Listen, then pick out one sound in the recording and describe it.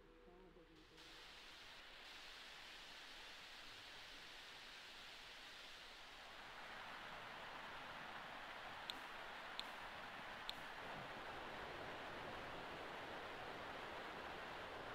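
Rain falls steadily and grows heavier.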